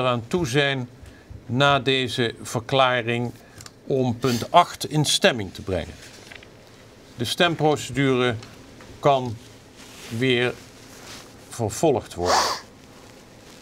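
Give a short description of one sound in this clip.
An elderly man speaks calmly into a microphone, pausing often.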